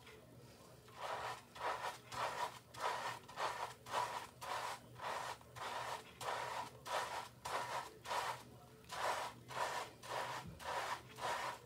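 A hand rubs and squelches soapy lather into wet hair in quick rhythmic bursts.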